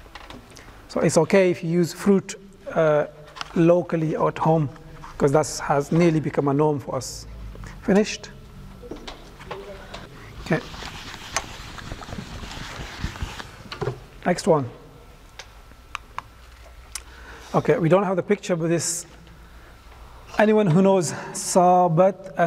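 A man speaks calmly into a clip-on microphone, explaining in a teaching tone.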